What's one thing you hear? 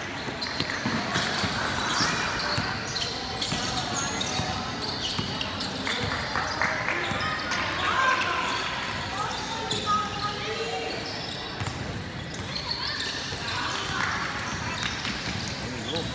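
Young players shout and call out in a large echoing hall.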